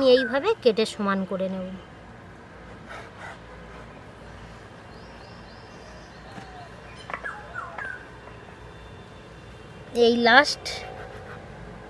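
A knife presses through soft dough and taps against a wooden board.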